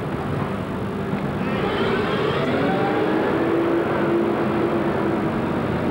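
A vintage military jeep drives past on a street.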